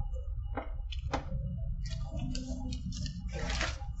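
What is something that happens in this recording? A man chews food noisily.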